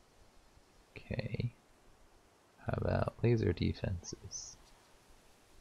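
A young man speaks briefly and calmly into a close microphone.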